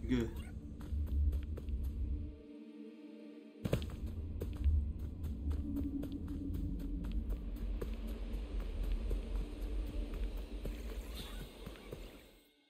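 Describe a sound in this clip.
Quick footsteps patter over grass and soil.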